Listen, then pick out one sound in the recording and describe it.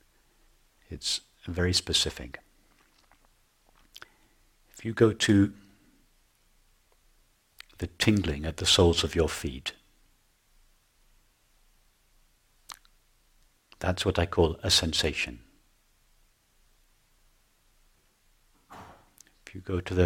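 A middle-aged man speaks calmly and slowly, with long pauses.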